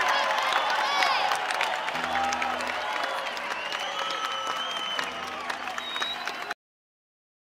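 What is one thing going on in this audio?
An acoustic guitar strums.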